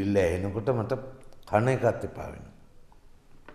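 A middle-aged man speaks nearby.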